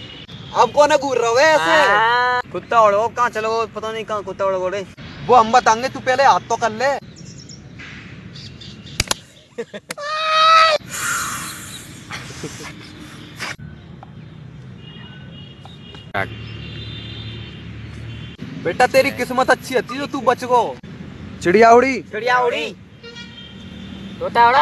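Young men talk with animation close by, outdoors.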